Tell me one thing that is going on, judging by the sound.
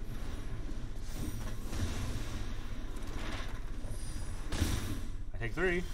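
Electronic game effects whoosh as cards are played.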